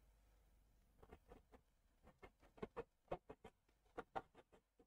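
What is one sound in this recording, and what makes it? A brush taps and dabs softly against a canvas.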